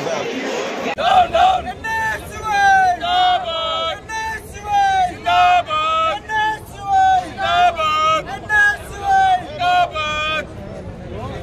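A young man shouts slogans loudly in short bursts.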